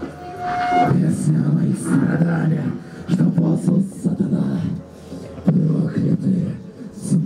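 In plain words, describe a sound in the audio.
A man growls harshly into a microphone.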